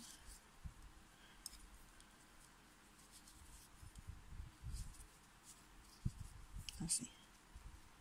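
Scissors snip yarn with sharp clicks.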